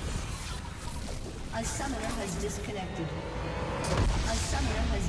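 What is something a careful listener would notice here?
Video game battle effects crackle and clash.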